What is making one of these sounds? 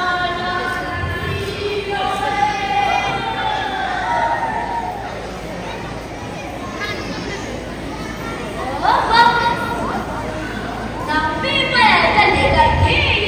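Children's feet stamp on a hard floor.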